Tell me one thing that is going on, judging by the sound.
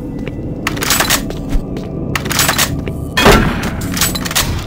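A pump-action shotgun fires blasts.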